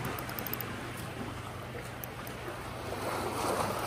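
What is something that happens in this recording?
A fishing reel clicks as its handle is turned.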